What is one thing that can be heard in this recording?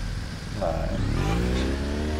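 A motorcycle engine revs up.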